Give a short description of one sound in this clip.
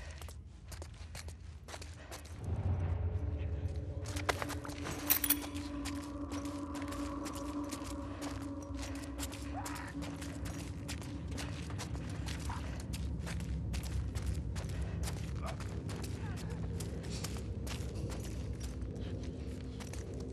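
Footsteps shuffle softly on a gritty floor.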